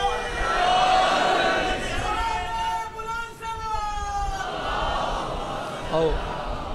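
A man chants loudly in a long drawn-out melody through a microphone, with echo.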